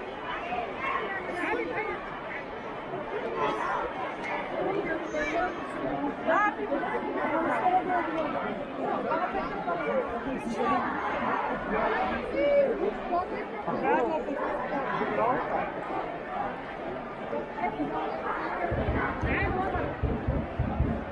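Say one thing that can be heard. A large crowd of men and women talks and chatters all around outdoors.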